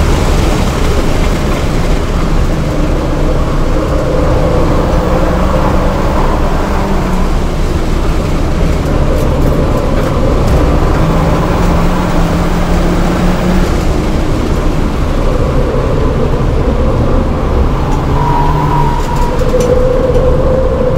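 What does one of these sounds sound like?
A turbocharged four-cylinder car engine revs hard, rising and dropping between gear changes, heard from inside the cabin.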